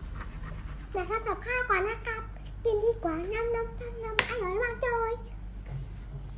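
A young girl speaks close by, calmly.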